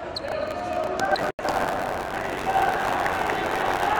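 A futsal ball thuds as it is kicked on the court.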